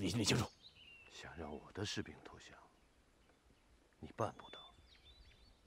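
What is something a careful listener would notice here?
A middle-aged man speaks sternly and calmly close by.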